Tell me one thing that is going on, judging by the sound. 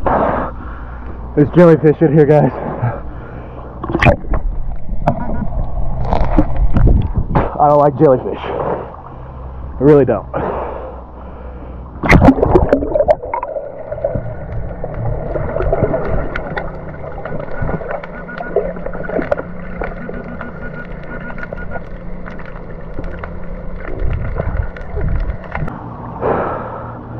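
Water sloshes and splashes close by at the surface.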